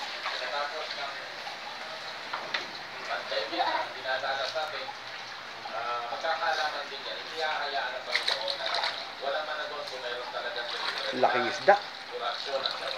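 Water splashes and sloshes in a small pool.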